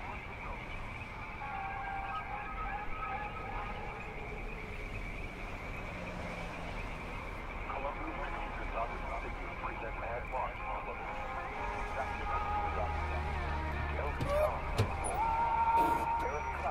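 Music plays from a loudspeaker outdoors.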